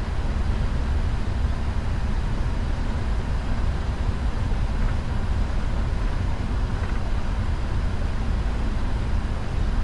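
Jet engines rumble steadily as an airliner rolls along a runway.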